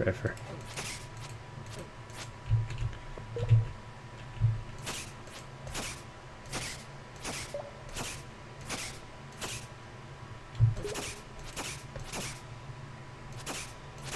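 Soft footsteps tap at a steady pace.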